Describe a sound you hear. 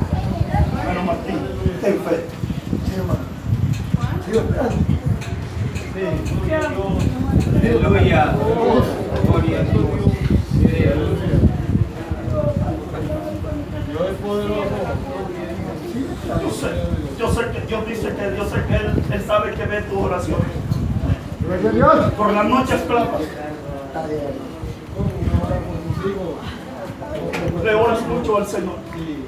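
A man speaks loudly and with feeling in a room with a slight echo.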